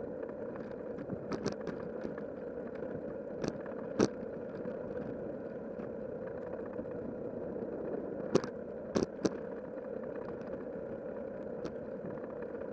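Tyres roll steadily along a paved path with a low hum.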